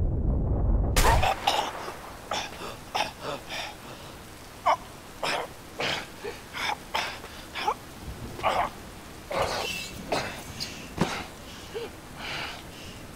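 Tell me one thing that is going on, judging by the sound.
A man speaks haltingly in a strained, pained voice.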